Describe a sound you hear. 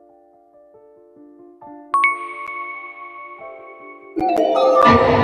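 Bright magical chimes ring out in short tones.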